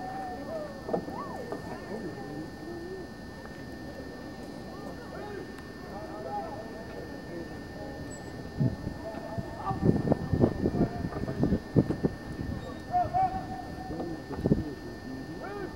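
Men talk quietly in the distance, outdoors.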